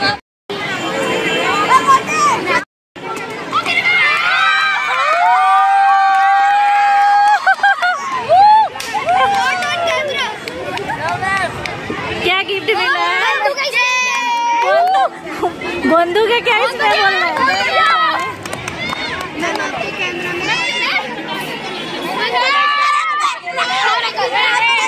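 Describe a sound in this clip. Young boys laugh and shout excitedly close by.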